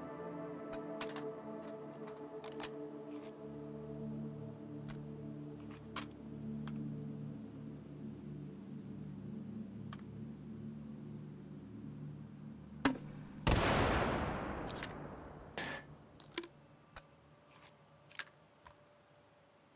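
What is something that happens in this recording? Metal gun parts click and clatter during handling.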